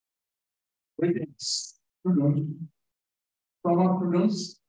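A middle-aged man speaks into a microphone over an online call.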